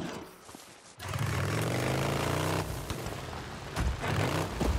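A motorcycle engine starts and revs loudly.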